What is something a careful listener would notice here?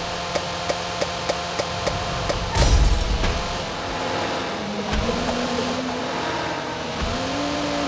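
A racing car engine hums and rises in pitch.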